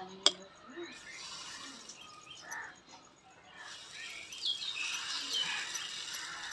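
Batter sizzles softly on a hot pan.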